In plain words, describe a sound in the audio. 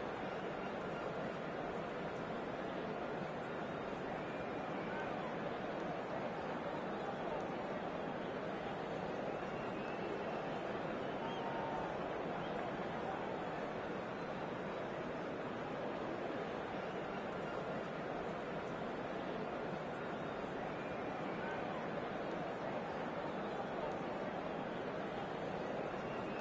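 A stadium crowd murmurs and cheers steadily.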